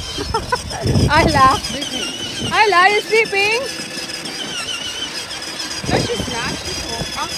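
A toddler squeals and babbles nearby.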